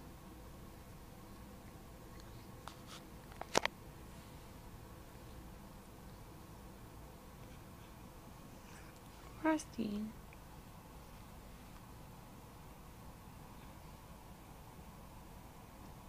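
A cat purrs softly and steadily up close.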